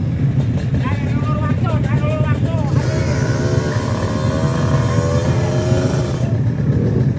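A motorcycle engine revs up and down sharply.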